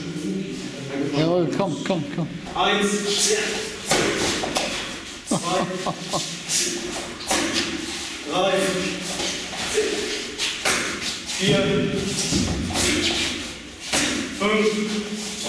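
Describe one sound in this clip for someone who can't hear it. A young man shouts commands loudly in an echoing room.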